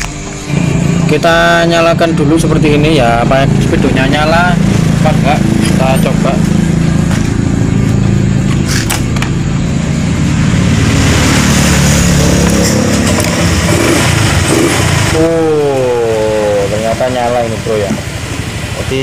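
A scooter engine idles with a steady low rumble.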